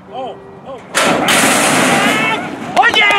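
Metal starting gates clang open with a loud bang.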